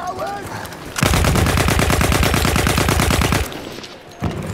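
A machine gun fires a long rapid burst.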